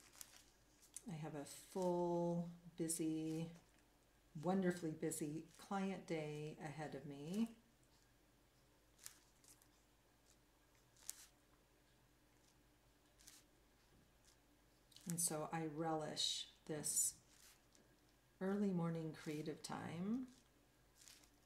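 An older woman talks calmly and close to a microphone.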